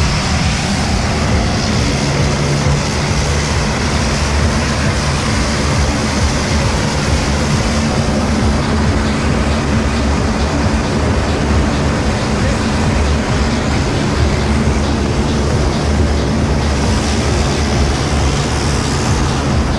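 A small propeller plane's engine roars steadily close by.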